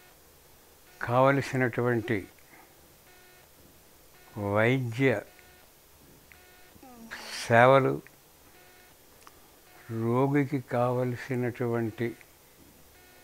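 An elderly man speaks slowly and weakly into a close microphone, in short phrases with pauses.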